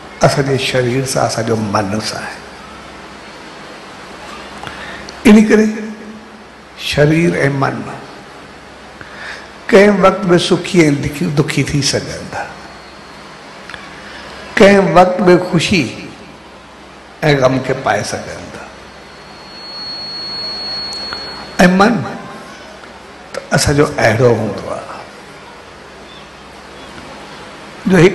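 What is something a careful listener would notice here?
A middle-aged man speaks or chants with feeling into a microphone, in short bursts with pauses.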